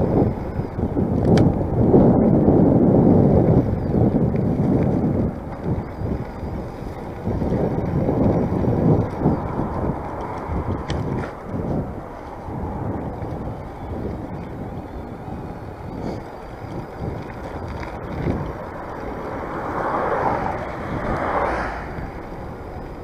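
Tyres roll over the pavement.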